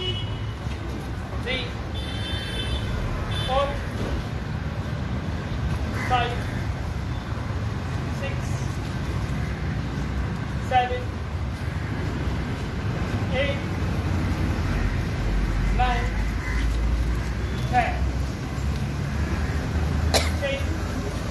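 Shoes shuffle and scrape softly on a paved floor.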